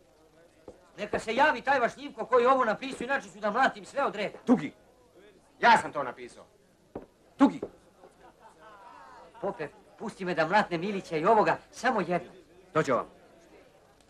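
A young man speaks loudly with animation, close by.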